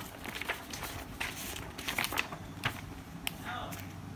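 Paper rustles as a booklet is handled.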